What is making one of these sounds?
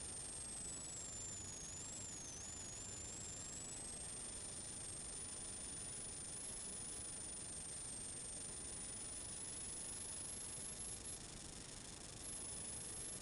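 A car engine roars steadily from inside the cabin.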